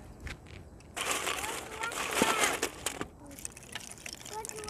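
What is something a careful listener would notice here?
Firewood clatters into a metal stove.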